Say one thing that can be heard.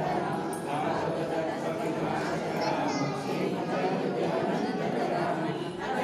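A group of women chant together in unison.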